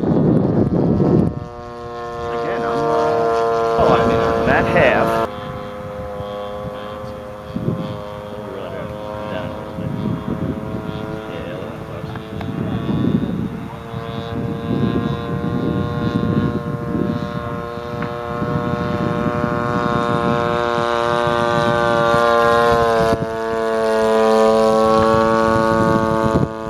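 A small propeller plane's engine drones overhead, rising and falling in pitch as it flies past.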